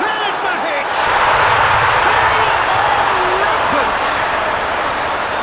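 A stadium crowd roars loudly in celebration.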